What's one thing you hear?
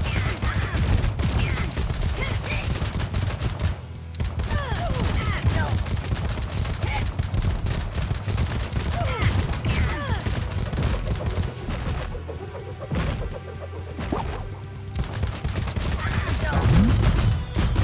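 Game shots fire in rapid bursts.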